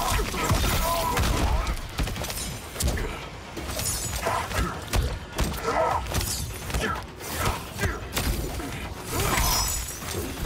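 Punches and kicks land with heavy thuds and cracks.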